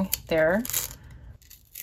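A sticker peels off its backing sheet with a soft rustle.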